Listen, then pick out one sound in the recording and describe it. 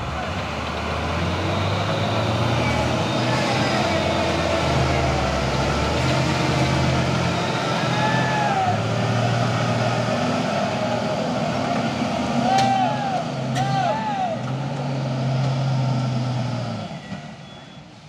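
A truck engine roars and strains loudly, then fades as the truck pulls away.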